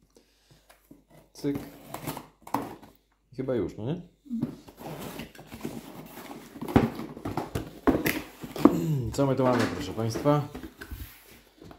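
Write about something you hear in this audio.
Cardboard scrapes and rustles as a box is opened by hand.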